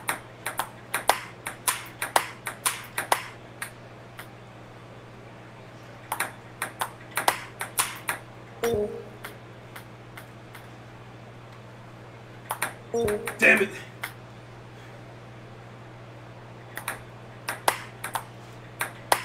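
A ping-pong ball clicks back and forth between paddles and a table in quick bursts.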